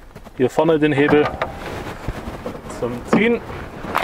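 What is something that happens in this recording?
A hood release latch clicks.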